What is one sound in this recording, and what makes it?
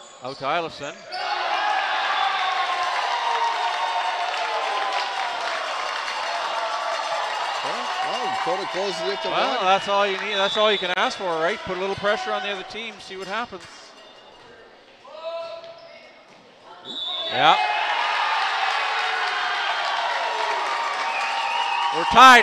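A crowd cheers and shouts loudly in an echoing gym.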